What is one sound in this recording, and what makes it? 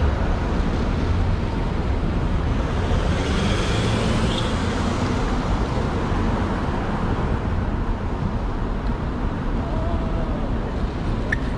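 Wind buffets loudly and steadily outdoors.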